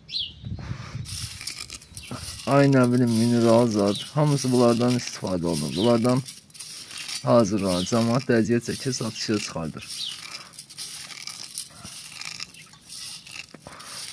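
Small hard flakes rustle and clink as a hand stirs through them.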